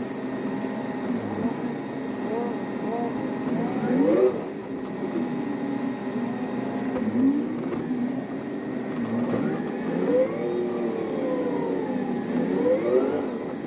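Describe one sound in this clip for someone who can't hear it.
A bus engine hums steadily while the bus rolls through slow traffic.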